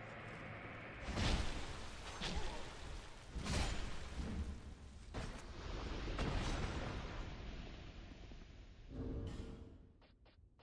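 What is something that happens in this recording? Heavy blows thud and clang in a fight.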